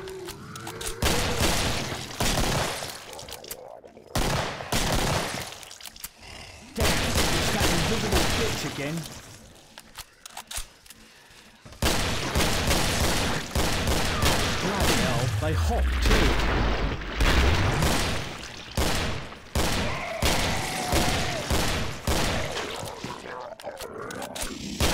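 Guns fire in rapid bursts, echoing down a corridor.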